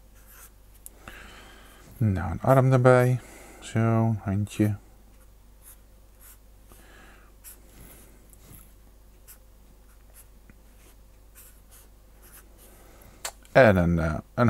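A felt-tip pen scratches softly across paper.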